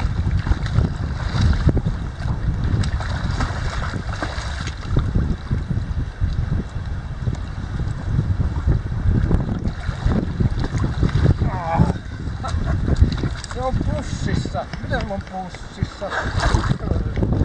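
Water laps and splashes around a wading man's legs.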